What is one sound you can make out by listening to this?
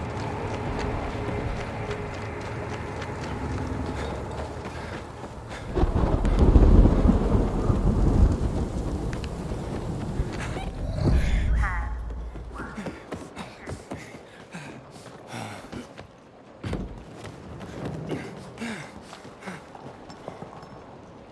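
Footsteps crunch over gravel and debris.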